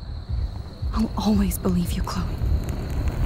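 A second young woman answers gently.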